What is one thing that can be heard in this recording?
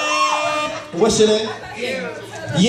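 A man speaks loudly through a microphone over a loudspeaker.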